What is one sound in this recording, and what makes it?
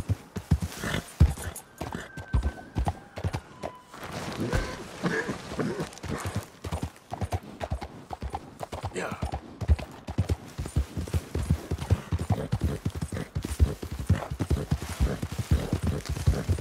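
A horse's hooves clop steadily over rock and grass.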